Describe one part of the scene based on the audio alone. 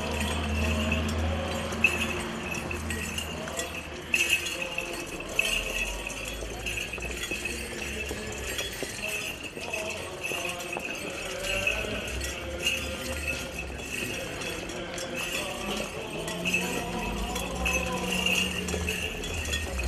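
Small bells on a swinging censer jingle rhythmically.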